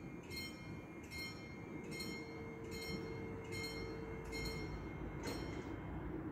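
A level crossing bell rings with evenly spaced strokes, then stops.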